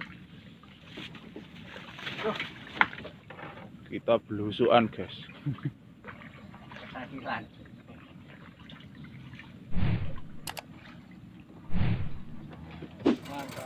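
Water ripples against a wooden boat's hull.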